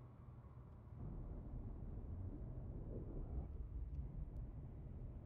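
Thruster exhaust blasts up dust with a rushing roar.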